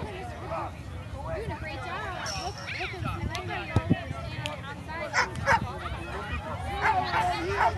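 Adult spectators cheer and call out.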